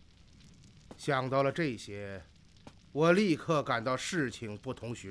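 A middle-aged man speaks gravely and calmly.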